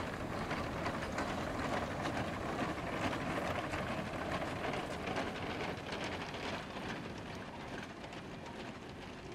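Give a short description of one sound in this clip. Steel wheels rumble and clank on the rails.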